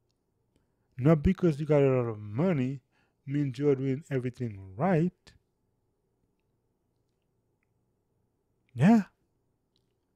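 A young man speaks calmly into a close microphone, in short phrases with pauses.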